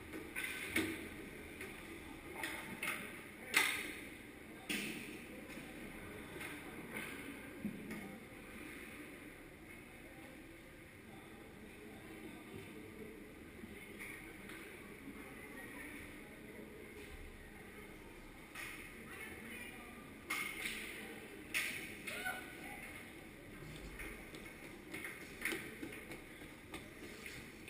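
Hockey sticks and pucks knock sharply against the ice and boards, echoing through a large hall.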